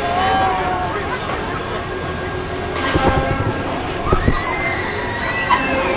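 A fairground ride swings and rumbles past overhead.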